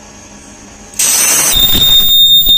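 A machine press lowers with a hiss of air.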